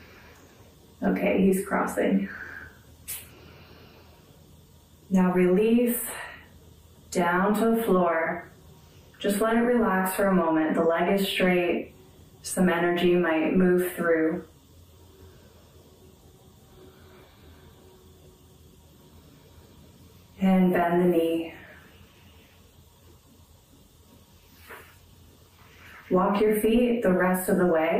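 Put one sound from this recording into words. A woman speaks calmly and clearly close to a microphone, pausing between phrases.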